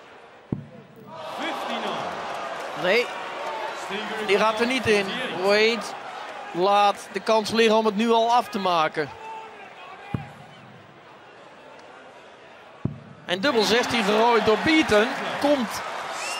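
A large crowd cheers loudly in a big hall.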